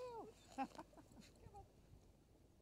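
A dog yelps excitedly nearby.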